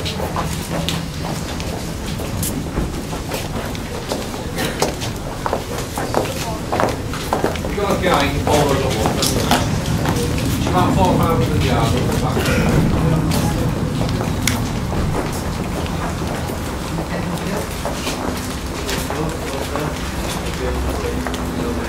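A crowd of men and women murmurs quietly nearby.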